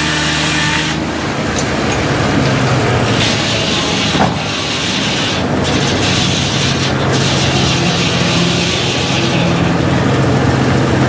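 A circular saw cuts through a log with a loud rasping roar.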